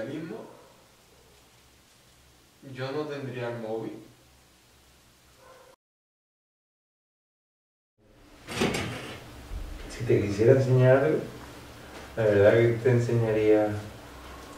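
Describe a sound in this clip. A young man speaks calmly and close by, pausing between phrases.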